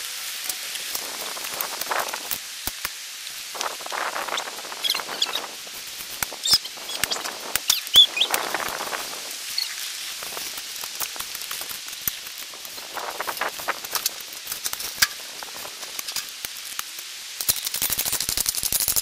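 A shovel scrapes and digs into dirt.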